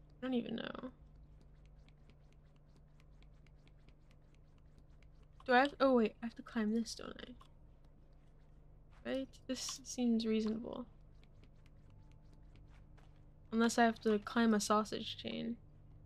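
A young woman talks in short bursts through a microphone.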